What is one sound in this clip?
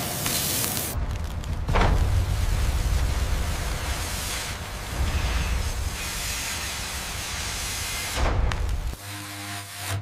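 A large disc cutter grinds into a bronze bell.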